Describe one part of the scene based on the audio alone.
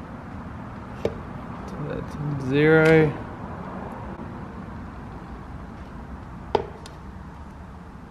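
A bicycle wheel knocks softly as it is set down on a hard surface.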